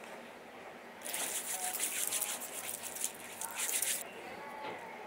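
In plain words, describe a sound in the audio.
Hands rub together with a soft swishing.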